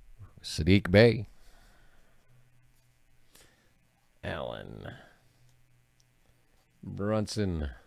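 Trading cards rustle and slide as hands flip through them.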